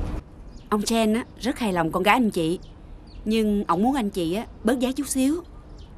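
A middle-aged woman talks with animation.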